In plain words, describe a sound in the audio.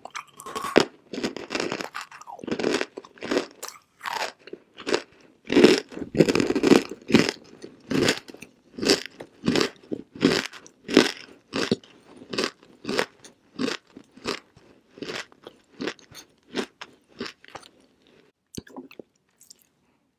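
A young woman makes quick, wet mouth and kissing sounds close to a microphone.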